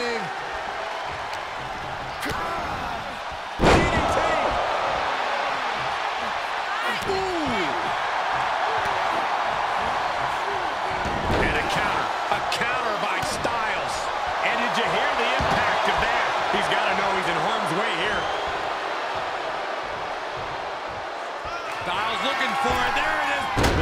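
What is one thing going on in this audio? A large crowd cheers and roars throughout in a big arena.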